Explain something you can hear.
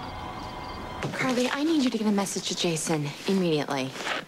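A young woman speaks urgently and with emotion, close by.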